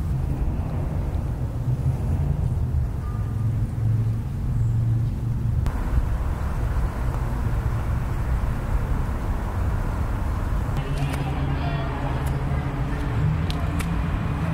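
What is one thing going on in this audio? Wind blows steadily against the microphone outdoors.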